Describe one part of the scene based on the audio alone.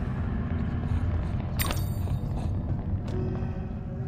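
Light footsteps patter across a stone floor.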